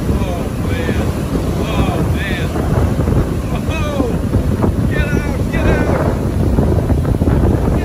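Waves crash and roll onto the shore.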